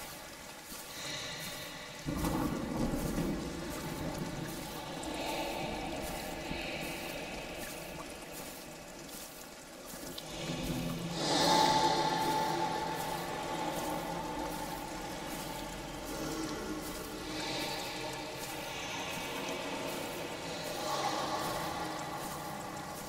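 Footsteps crunch steadily over dry leaves.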